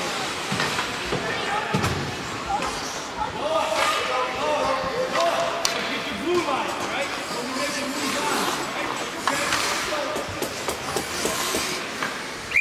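Skate blades scrape and hiss across the ice in an echoing indoor rink.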